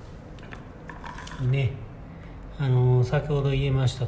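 A small plastic object is picked up off a wooden floor with a light knock.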